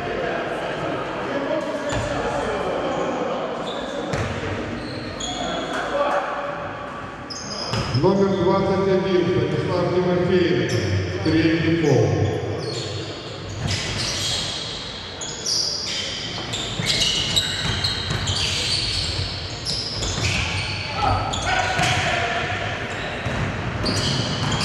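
Spectators chatter and call out in the stands.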